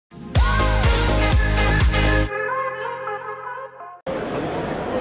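A short musical sting plays.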